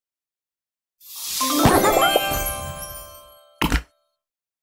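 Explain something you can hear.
A bright victory jingle plays with sparkling chimes.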